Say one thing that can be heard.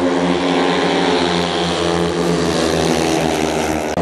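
Speedway motorcycles roar around a track.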